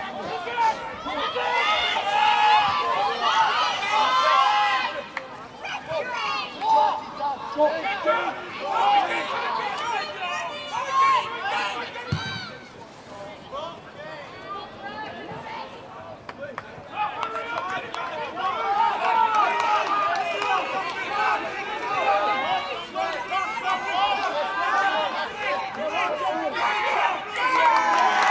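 Young men shout and call to each other outdoors on an open field.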